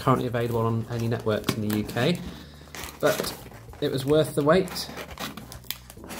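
Packing tape peels off cardboard with a tearing sound.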